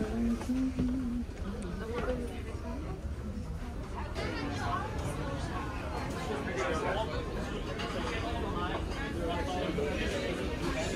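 Shoppers murmur and chatter in a busy, echoing indoor space.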